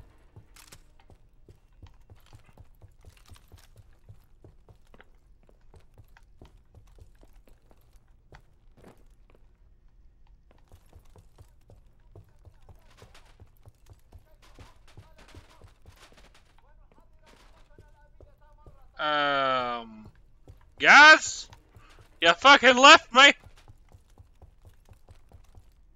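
Footsteps thud softly on a hard floor.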